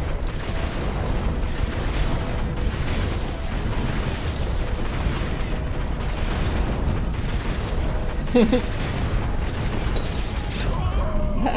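Rapid gunfire and explosions roar continuously.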